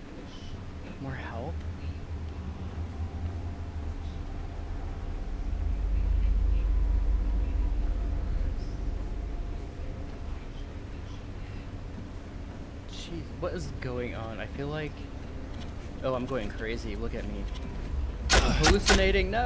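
A man talks into a close microphone, calmly and in short bursts.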